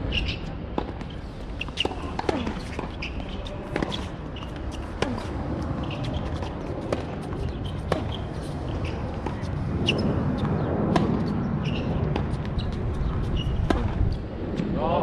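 Tennis rackets strike a ball back and forth with sharp pops.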